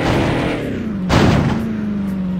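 A car crashes with a loud thud.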